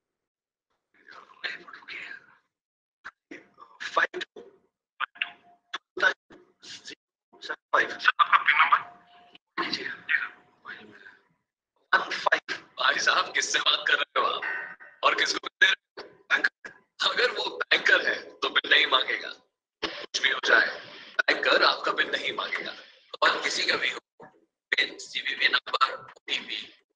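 A man talks animatedly, heard through an online call.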